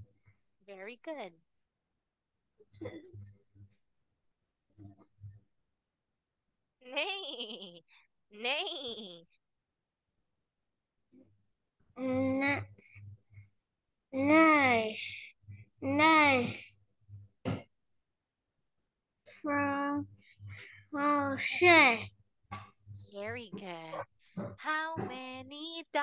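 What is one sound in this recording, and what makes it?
A woman speaks and sings animatedly over an online call.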